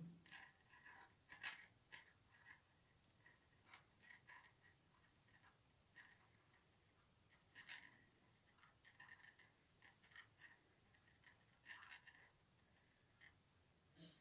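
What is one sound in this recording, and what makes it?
Yarn rustles as it is pulled through stitches.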